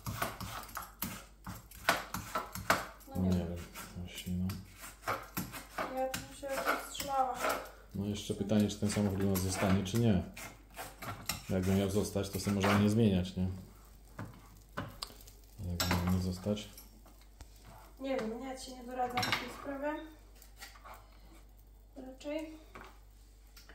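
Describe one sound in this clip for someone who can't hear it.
A knife taps on a chopping board.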